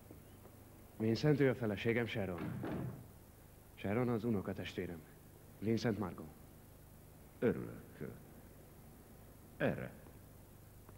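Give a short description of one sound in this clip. A man speaks in greeting in a large echoing hall.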